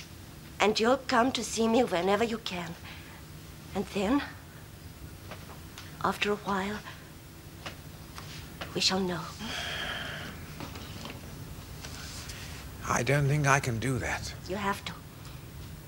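A man speaks in a low, troubled voice.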